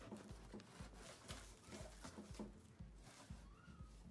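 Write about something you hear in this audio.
A knife slices through packing tape.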